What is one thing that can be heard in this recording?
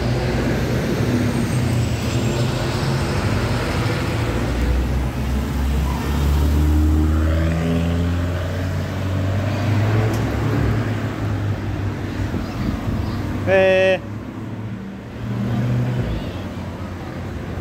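Traffic rumbles steadily along a busy street.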